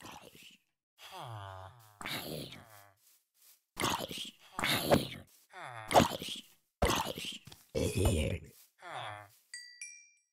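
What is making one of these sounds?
A burning game zombie groans.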